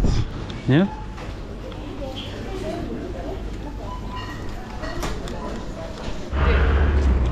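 Shoppers murmur quietly in a large indoor hall.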